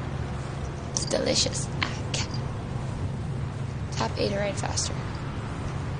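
A young woman speaks casually into a nearby microphone.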